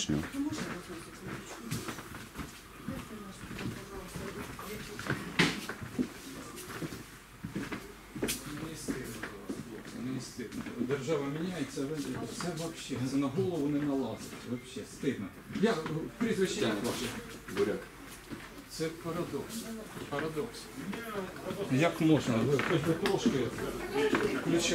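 A middle-aged man talks nearby.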